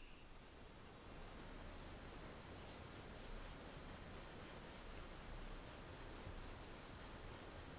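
A knife slices softly through sponge cake onto a wooden board.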